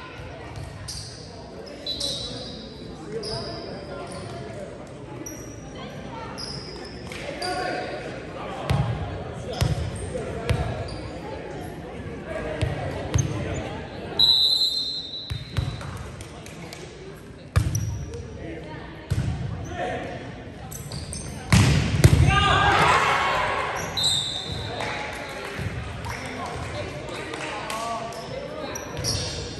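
Players call out to each other in an echoing hall.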